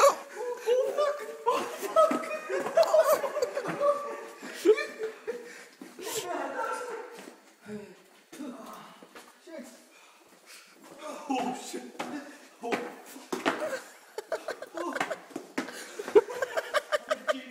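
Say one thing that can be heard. A young man talks and laughs close by in an echoing space.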